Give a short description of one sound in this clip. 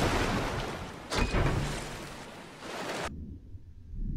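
Water splashes loudly as a swimmer dives under.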